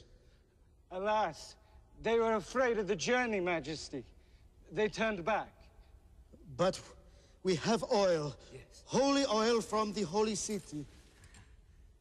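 A man answers in a humble, pleading voice.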